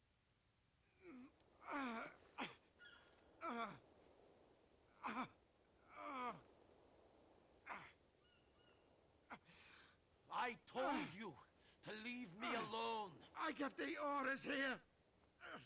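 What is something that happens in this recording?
An older man speaks in a strained, pained voice, close by.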